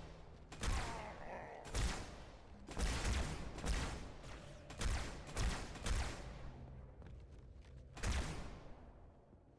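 Loud explosions boom with a deep rumble.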